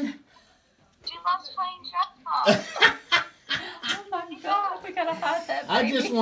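A young woman talks cheerfully over a phone call.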